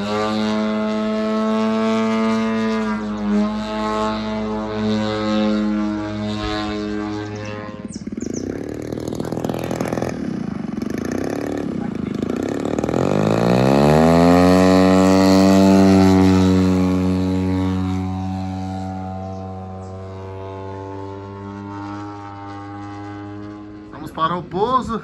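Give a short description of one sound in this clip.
A model airplane engine whines steadily overhead.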